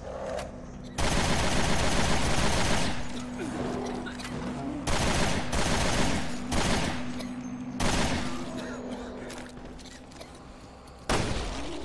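Gunshots fire in loud bursts, echoing.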